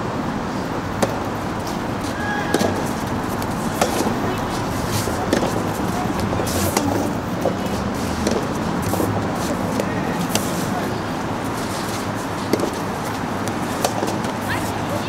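Rackets strike a ball with sharp pops, back and forth outdoors.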